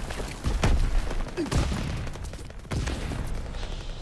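Heavy explosions boom close by, with rumbling echoes.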